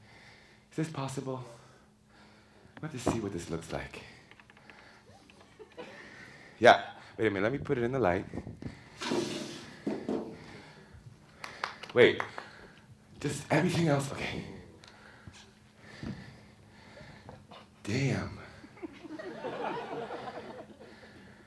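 A young man speaks and calls out dramatically in a large room with a slight echo.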